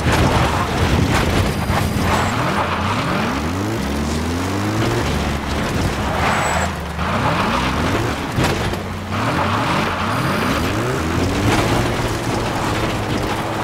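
A jeep engine revs and roars, rising in pitch as it shifts gears.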